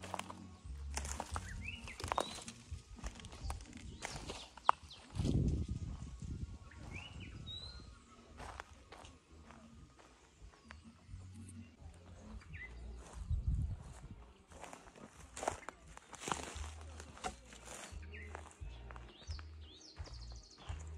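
Footsteps crunch on dry twigs and dirt.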